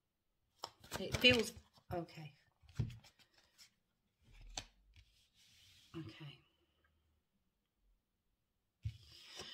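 A middle-aged woman speaks calmly and quietly close to a microphone, with pauses.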